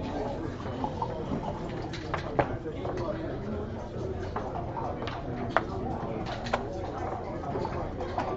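Plastic game pieces click against a board.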